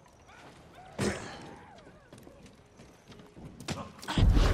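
Footsteps patter across roof tiles.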